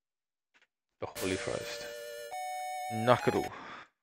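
Chiptune game music plays with bright beeping notes.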